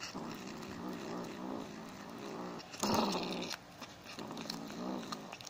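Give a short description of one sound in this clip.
A kitten nibbles and chews on a finger.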